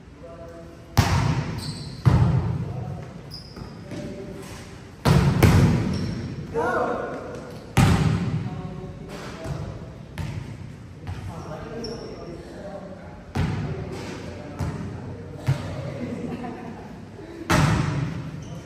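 A volleyball is struck hard, booming in a large echoing hall.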